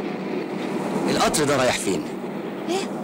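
A man speaks urgently nearby.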